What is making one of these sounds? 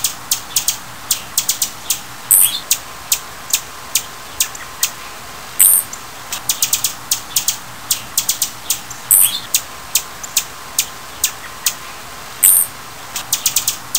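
A hummingbird's wings hum softly as it hovers close by.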